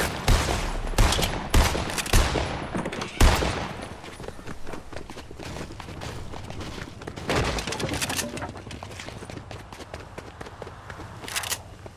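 Footsteps thud quickly on wooden floors and grass.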